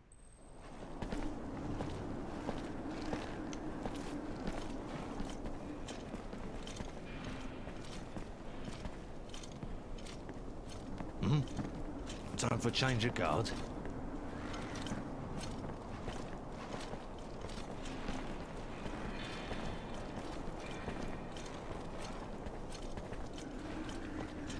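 Footsteps thud on stone.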